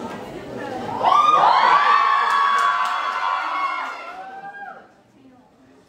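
A crowd of young women screams and cheers with excitement.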